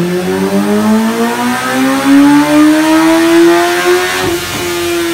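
An inline-four sport bike revs higher and higher at full throttle on a dyno.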